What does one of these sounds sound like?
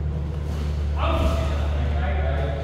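A man calls out loudly in an echoing hall.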